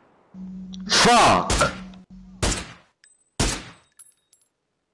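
A rifle fires loud single shots.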